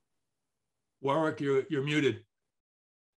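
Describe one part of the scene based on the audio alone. An older man speaks calmly over an online call.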